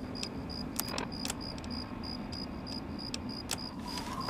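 Short electronic clicks sound as items are selected in a menu.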